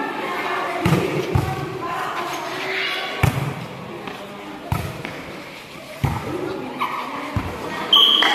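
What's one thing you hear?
A volleyball is struck with sharp slaps, several times.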